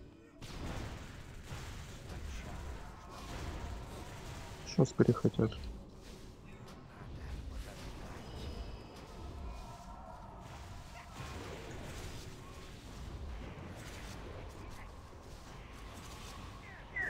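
Magic spells crackle and whoosh amid battle sounds.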